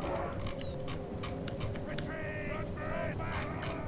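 A horse gallops over snow.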